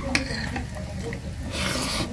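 A person chews food close to the microphone.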